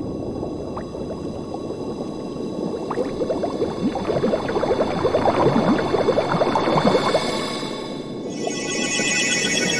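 Bubbles gurgle and pop underwater.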